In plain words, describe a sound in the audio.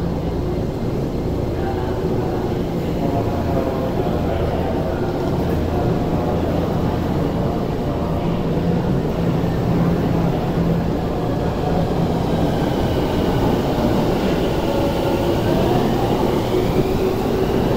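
A train rumbles past on the rails, its motors whining and rising in pitch.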